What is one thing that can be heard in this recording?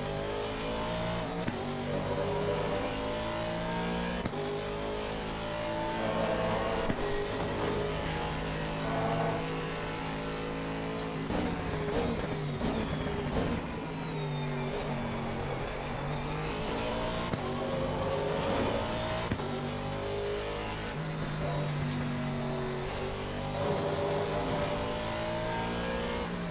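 A race car engine roars, revving up through the gears and dropping in pitch when braking.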